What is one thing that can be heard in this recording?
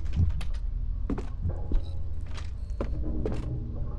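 Footsteps sound slowly on a wooden floor.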